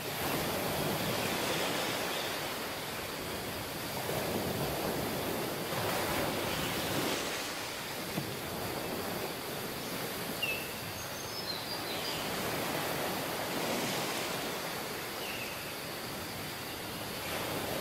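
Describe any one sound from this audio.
Ocean waves wash steadily onto the shore.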